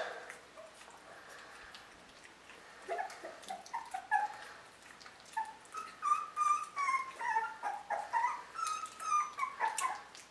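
A puppy licks and chews wetly on a finger.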